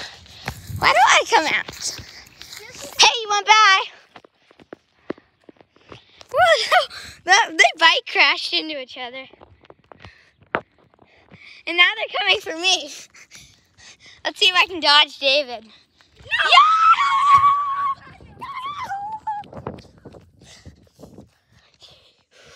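A woman talks excitedly and cheers close by.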